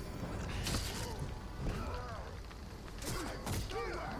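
Flames burst and crackle.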